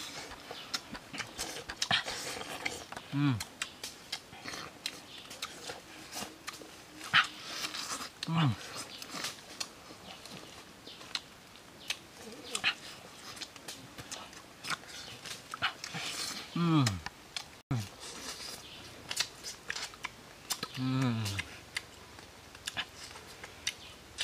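Young men crunch and chew on crisp food up close.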